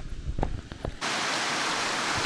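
A river rushes steadily.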